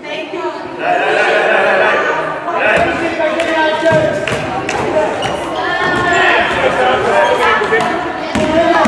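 Children shout and cheer in a large echoing hall.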